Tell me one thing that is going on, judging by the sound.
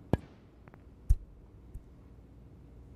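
Snooker balls knock together with a click.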